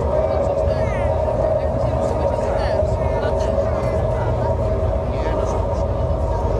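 A man speaks loudly from a stage, heard from within a crowd.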